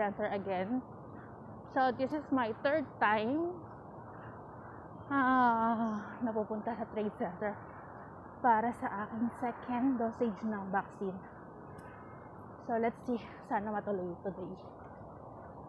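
A young woman talks close to the microphone.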